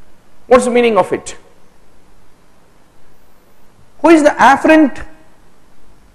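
A man speaks calmly through a microphone, lecturing in short phrases.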